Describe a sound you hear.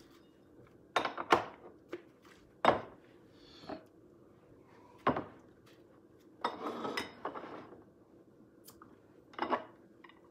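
Plastic and glass knock and clatter on a counter.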